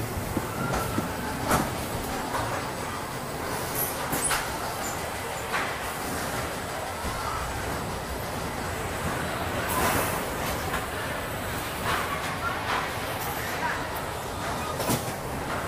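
A ride car rolls along a track with a low rumble.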